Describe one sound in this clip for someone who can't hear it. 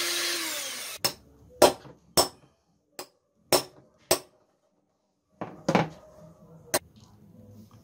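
A hammer knocks sharply on metal several times.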